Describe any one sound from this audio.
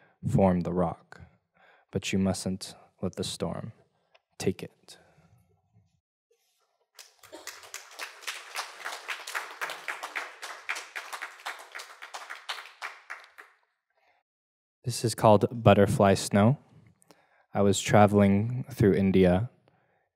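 A young man reads out slowly through a microphone, with pauses.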